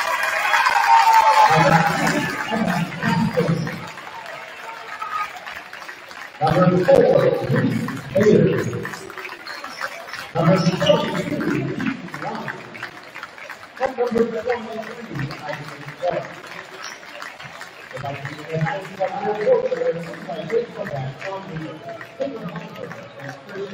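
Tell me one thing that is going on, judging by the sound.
Players clap and slap hands.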